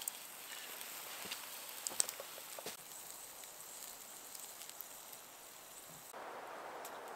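A wood fire crackles and pops close by.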